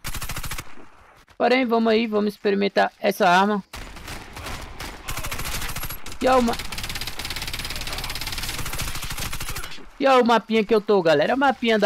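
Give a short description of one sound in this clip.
Rapid gunfire bursts ring out close by.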